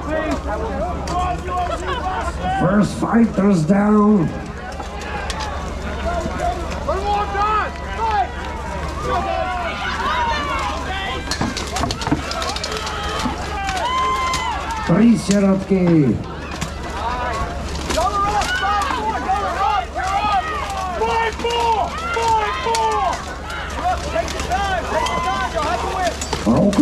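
A crowd chatters and calls out outdoors.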